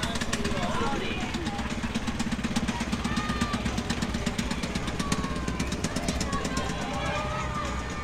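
A small vintage car engine putters and chugs close by.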